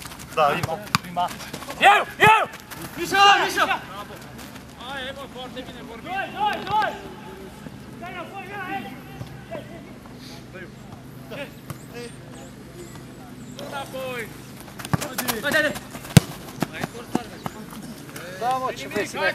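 Young men call out to each other outdoors.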